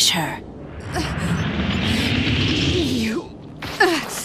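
A fiery blast roars from a creature's mouth.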